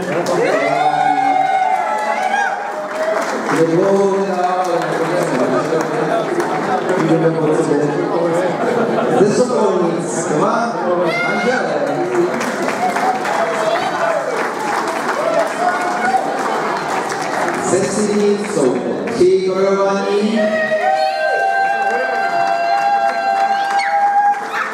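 A crowd chatters and calls out cheerfully.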